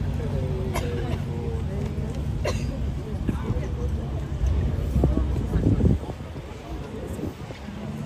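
People talk nearby outdoors.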